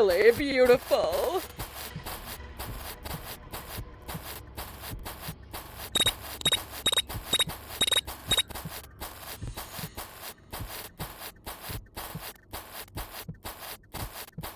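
Footsteps patter steadily on grass.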